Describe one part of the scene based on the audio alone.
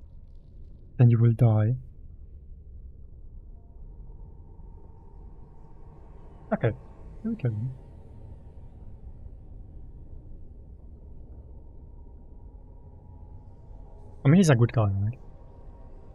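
A young man speaks briefly into a close microphone, in short bursts.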